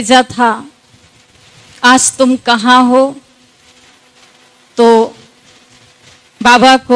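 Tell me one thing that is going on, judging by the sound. A man chants short phrases through a microphone, with pauses between them.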